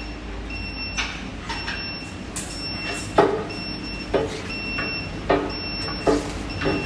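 An industrial machine knocks and clanks in a regular rhythm.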